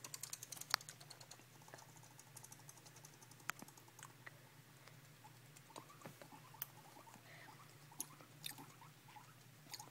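A guinea pig rustles through wood shavings.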